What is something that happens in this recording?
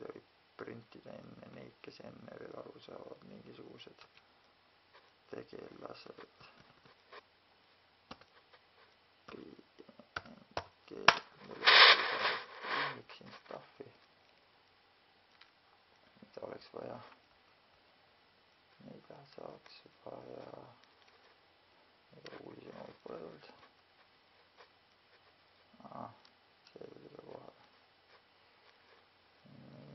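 A man talks in short bursts, close up.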